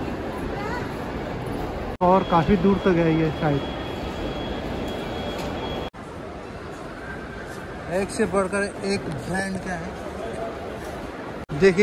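A crowd chatters and murmurs in a large echoing hall.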